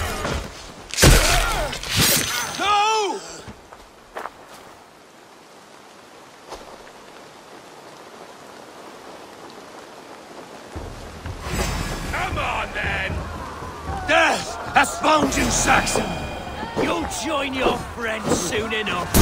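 Metal weapons clash and thud in a fight.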